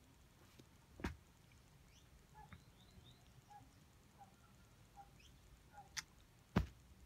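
A finger taps on a phone's touchscreen.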